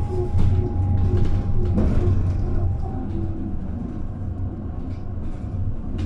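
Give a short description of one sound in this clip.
An electric bus hums as it idles close by.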